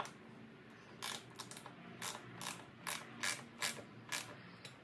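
A ratchet wrench clicks in short bursts against metal bolts.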